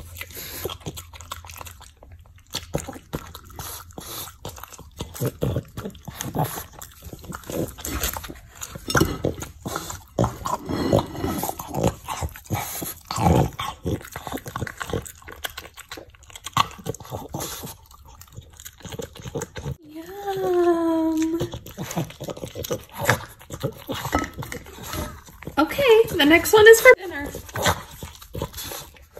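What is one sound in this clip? A dog licks and slurps food from a plate up close.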